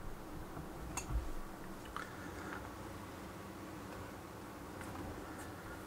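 Plastic toy pieces clack softly as a hand moves a toy house.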